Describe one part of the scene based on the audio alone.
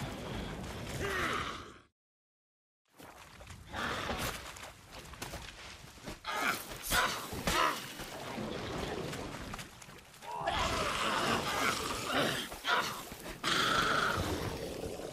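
A burst of fire crackles and roars.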